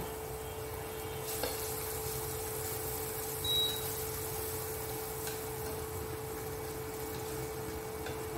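Wooden chopsticks scrape and tap against a frying pan.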